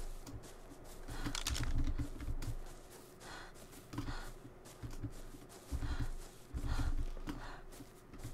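Leafy plants rustle as they are pulled up by hand.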